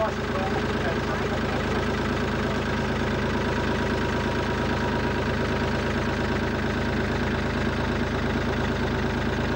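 A boat motor drones steadily at close range.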